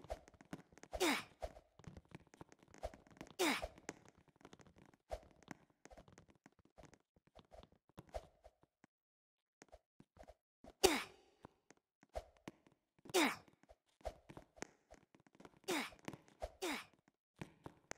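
Short jump sounds from a video game play again and again.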